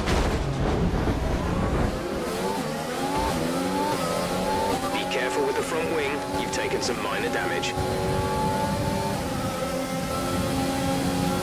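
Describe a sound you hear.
A racing car engine whines at high revs, rising in pitch as it speeds up.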